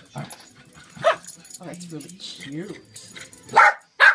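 A small dog barks sharply.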